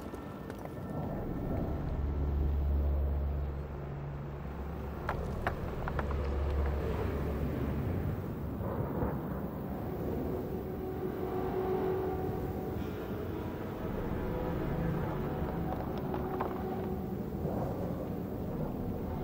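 Armoured footsteps crunch on rocky ground.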